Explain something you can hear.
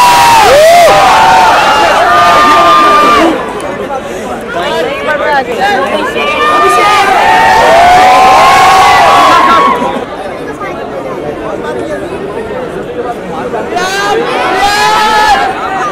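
A large crowd shouts and screams with excitement close by.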